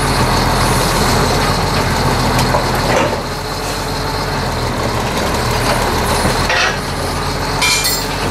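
A wheel loader's diesel engine rumbles steadily close by.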